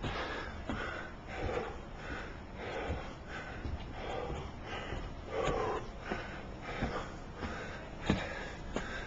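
Footsteps climb hard outdoor steps at a steady pace.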